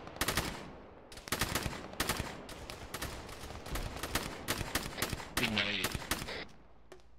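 Rifle shots crack in rapid bursts close by.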